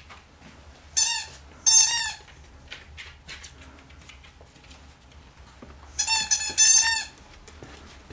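A squeaky toy squeaks loudly in a dog's mouth.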